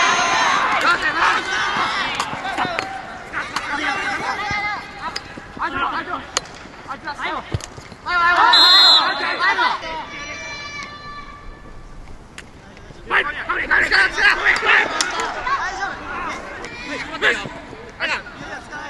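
Lacrosse sticks clack against each other.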